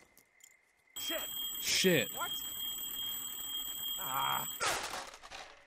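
An alarm rings loudly.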